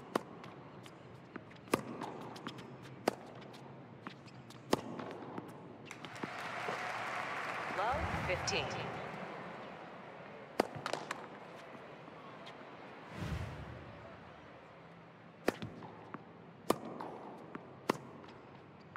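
Tennis balls are struck with sharp pops of a racket.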